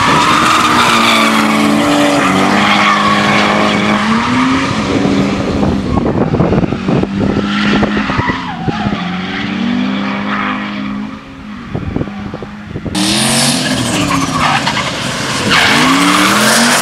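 Tyres screech loudly on tarmac.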